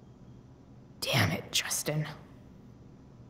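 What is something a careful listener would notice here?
A young woman speaks a short, exasperated line close by.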